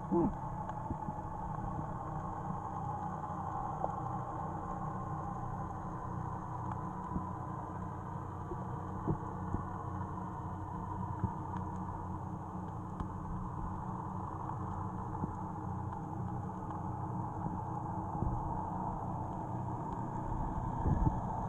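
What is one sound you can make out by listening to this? Water rumbles steadily in a muffled hush underwater.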